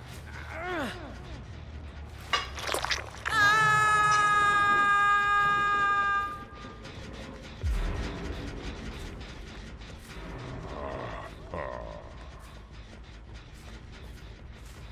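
Heavy footsteps crunch steadily through grass.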